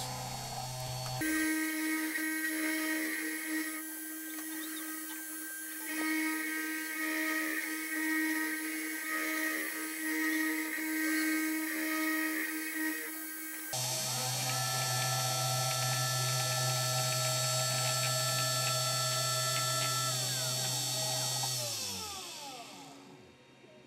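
A milling spindle whines steadily as it carves a board, then winds down.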